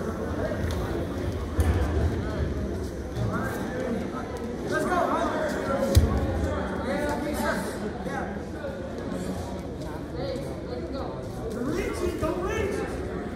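Wrestlers' feet thump and scuff on a mat.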